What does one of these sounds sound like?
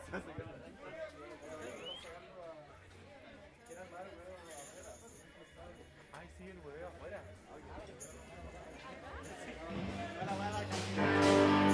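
A crowd of young adults chatters and talks nearby.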